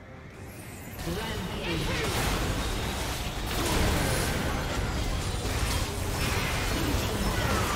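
Video game spell effects crackle and boom in a busy fight.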